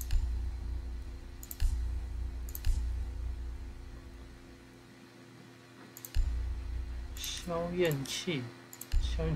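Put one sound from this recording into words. Soft interface clicks sound as menu options are selected.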